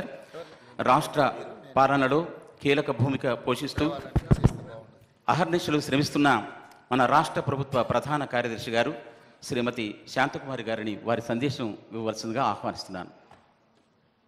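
A man speaks with animation through a microphone and loudspeakers in a large hall.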